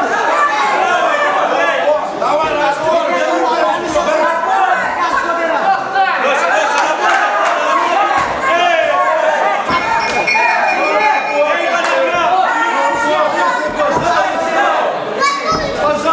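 A crowd of spectators murmurs and calls out in a large hall.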